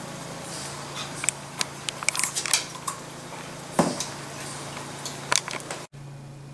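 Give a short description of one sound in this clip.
A dog crunches and chews raw carrot up close.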